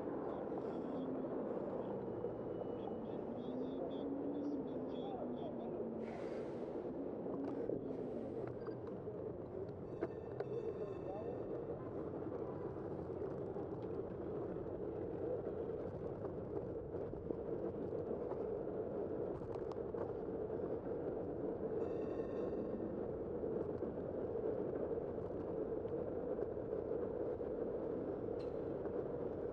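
Tyres hum steadily on smooth pavement.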